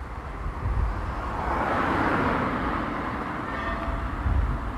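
A car drives past nearby.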